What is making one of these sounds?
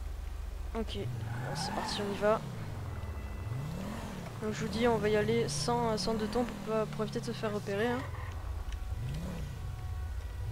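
A car engine revs up and down as the car drives off.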